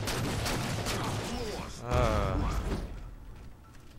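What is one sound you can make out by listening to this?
An explosion bursts with a crackling blast.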